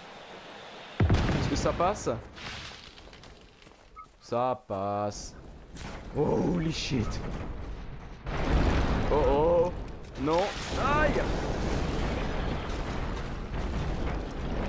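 Loud explosions boom and concrete debris crashes down.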